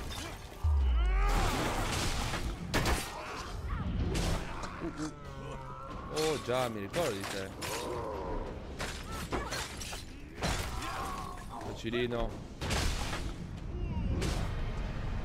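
Swords clash and hit in quick bursts of fighting.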